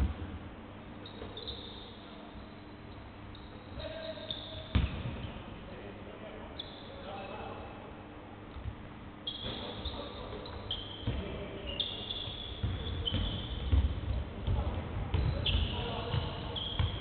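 Sneakers squeak sharply on a hardwood court in an echoing hall.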